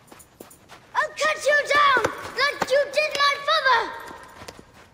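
A boy shouts angrily nearby.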